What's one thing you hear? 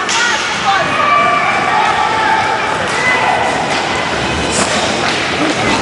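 Roller skate wheels rumble across a hard floor in a large echoing hall.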